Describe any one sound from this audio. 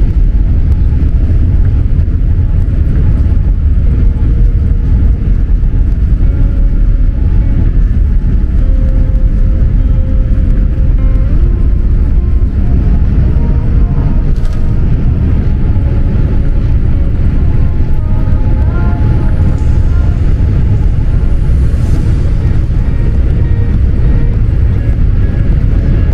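Jet engines roar loudly and steadily as an airliner takes off.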